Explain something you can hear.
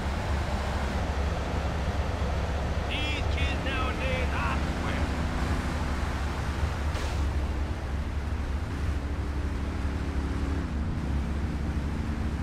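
Car engines hum as cars drive past on a road.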